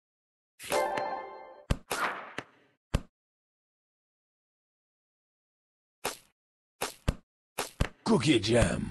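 Game sound effects chime and whoosh as pieces clear.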